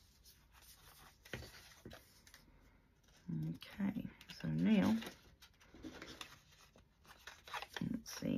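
Paper crinkles and rustles as it is folded by hand.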